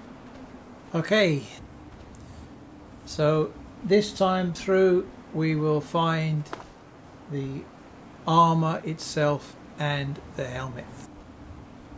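An older man talks calmly into a headset microphone, close by.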